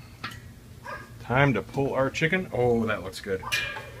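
A metal grill lid is lifted off with a clank.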